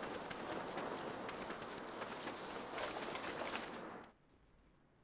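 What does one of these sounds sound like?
Quick footsteps crunch on dry dirt and gravel.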